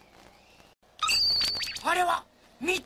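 A cartoon man shouts with excitement.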